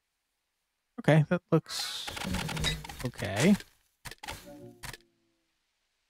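A loud burst of shuffling cards clatters in a rush.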